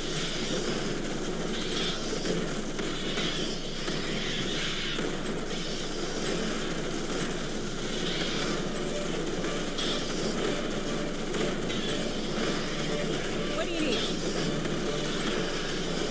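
Flames roar from a flamethrower.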